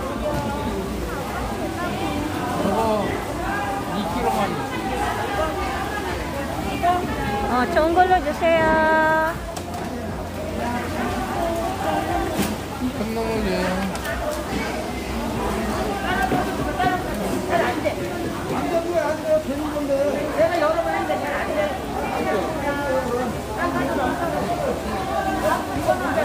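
Several adult men and women chatter and call out nearby in a busy crowd.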